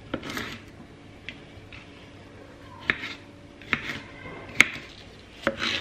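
A knife chops through vegetables onto a wooden board.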